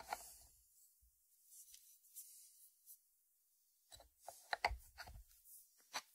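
A ceramic lid clinks as it is lifted off a dish and set back.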